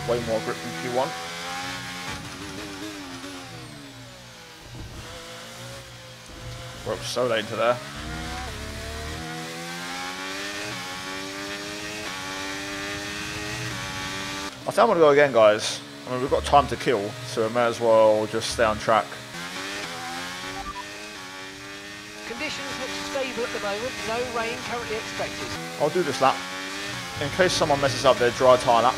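A racing car engine whines and shifts gears.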